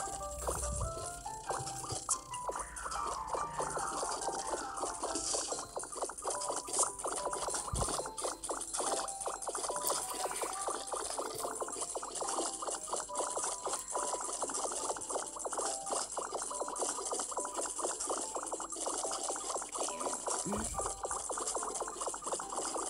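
Rapid cartoonish game sound effects pop and chime.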